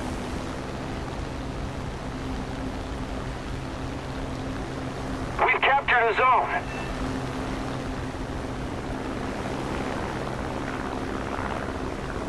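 Heavy propeller engines drone steadily.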